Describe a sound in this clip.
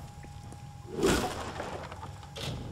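A weapon strikes with a crackling burst of magic.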